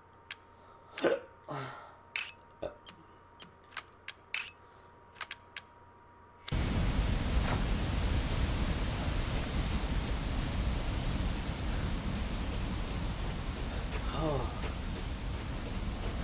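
A young woman talks nearby in short bursts.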